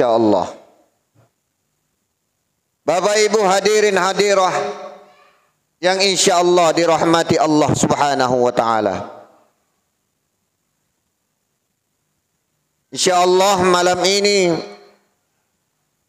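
A man chants a sermon in a melodic voice through a microphone and loudspeakers, with long pauses between phrases.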